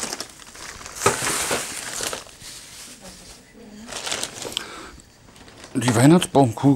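A plastic bag crackles and rustles.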